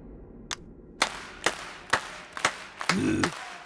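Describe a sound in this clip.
Several men clap their hands slowly.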